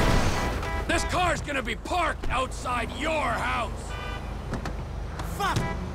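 A man shouts.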